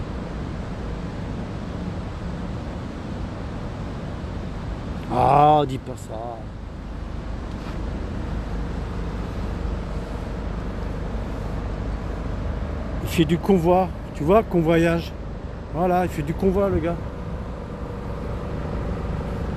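A boat engine idles with a low, steady rumble.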